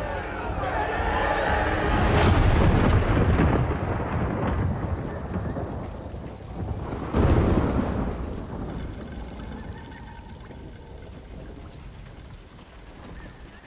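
Heavy rain pours down steadily.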